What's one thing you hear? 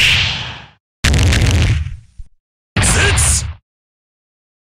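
Heavy energy bursts boom in short, loud rushes.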